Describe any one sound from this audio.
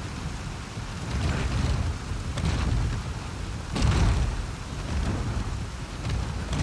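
A heavy wooden crate scrapes and grinds along the ground.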